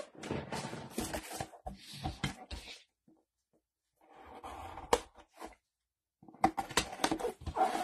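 A cardboard box scrapes and taps as gloved hands handle it.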